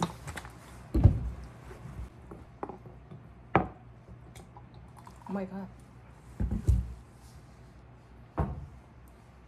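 A bottle and a glass knock down onto a hard counter.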